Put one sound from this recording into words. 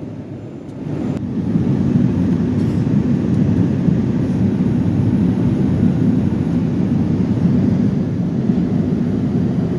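A vehicle's engine rumbles low and steady inside a cabin.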